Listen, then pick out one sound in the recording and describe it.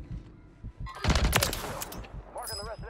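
A rifle fires a short, loud burst.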